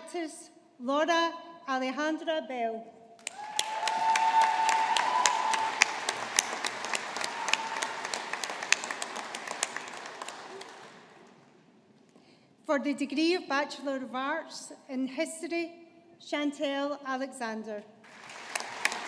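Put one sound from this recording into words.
A woman reads out names through a microphone in a large hall.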